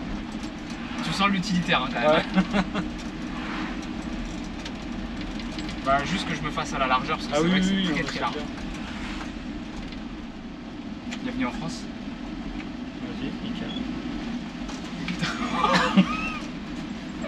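A man talks with animation over the engine noise.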